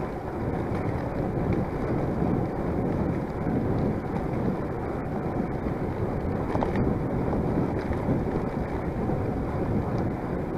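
Wind rushes loudly past, low and rumbling, outdoors.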